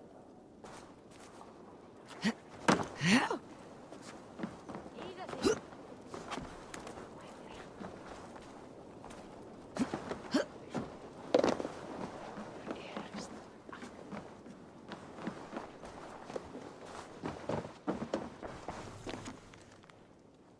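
Footsteps thud and creak on wooden planks.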